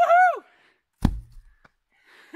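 A heavy log thuds onto the ground.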